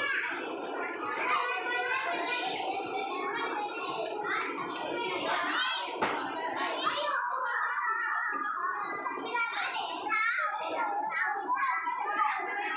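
Many young children chatter and shout in an echoing hall.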